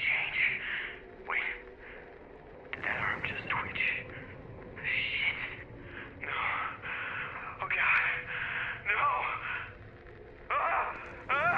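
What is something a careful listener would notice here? A man speaks nervously nearby.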